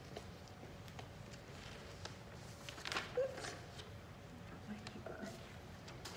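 Paper rustles as a woman handles sheets.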